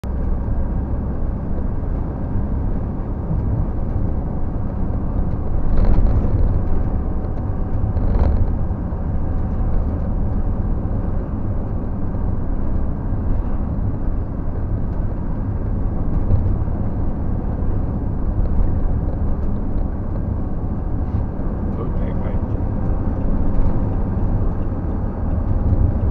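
A vehicle drives steadily along a road, with a low engine hum.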